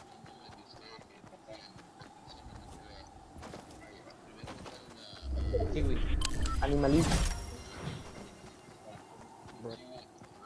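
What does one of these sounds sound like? Quick footsteps run over grass.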